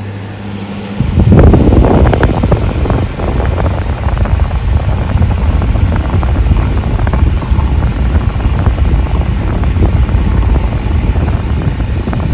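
A small electric fan starts up and whirs steadily with a rushing breeze.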